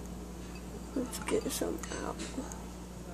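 Small gel beads clink against a glass bowl.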